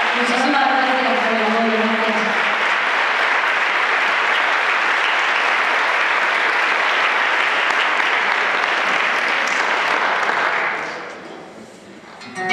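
An audience applauds loudly in a large echoing hall and then dies away.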